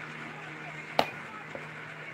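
A tablet knocks down onto a hard counter.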